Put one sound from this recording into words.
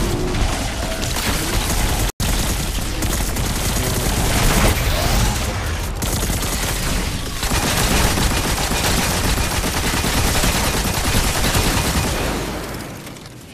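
Rapid gunfire blasts loudly in a game.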